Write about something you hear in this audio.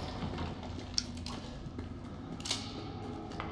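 A pistol is reloaded with metallic clicks.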